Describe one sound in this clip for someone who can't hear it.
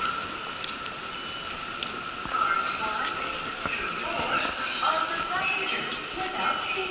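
A crowd of people chatter in the distance.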